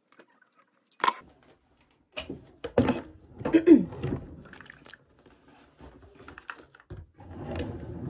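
A plastic plug and cord clatter and rustle as they are handled.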